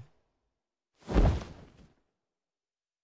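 A bean bag squashes with a soft thud as someone flops onto it.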